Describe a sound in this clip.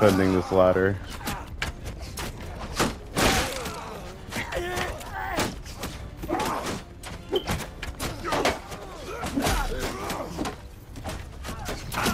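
Swords and shields clash sharply again and again in a battle.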